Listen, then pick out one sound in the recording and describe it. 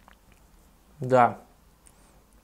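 A man lets out a long groan after drinking.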